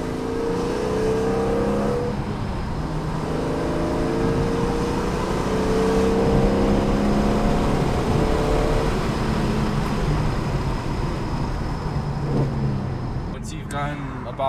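A car engine roars and rises in pitch as the car speeds up, heard from inside the car.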